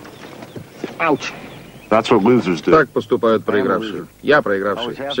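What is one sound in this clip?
A man speaks close by, in a clear, earnest voice.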